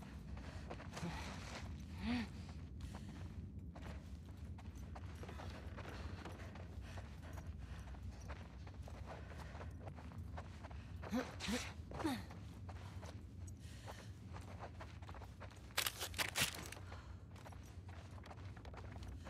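Footsteps crunch slowly on a gritty floor.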